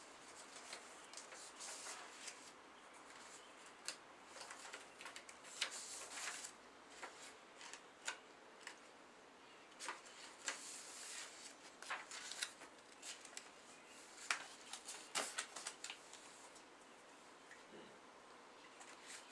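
Paper rustles and crinkles in hand.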